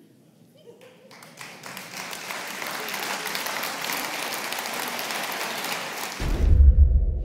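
A large audience applauds in a hall.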